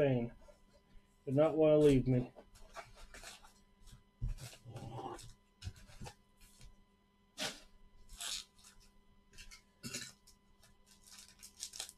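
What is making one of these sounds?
Cardboard packs rustle and tap as they are handled.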